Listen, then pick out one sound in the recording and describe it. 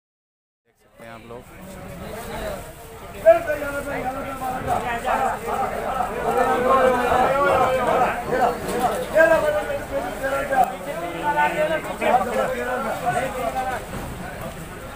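A crowd of men talks loudly and busily nearby.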